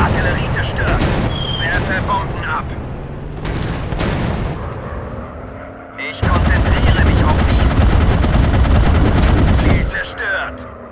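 Bombs explode on the ground with heavy booms.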